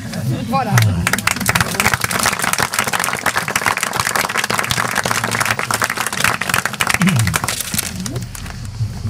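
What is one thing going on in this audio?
A small crowd applauds outdoors.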